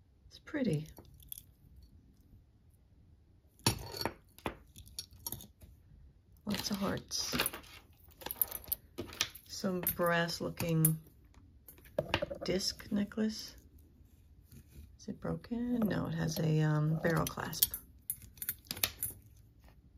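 Metal jewelry clinks and jingles as it is handled.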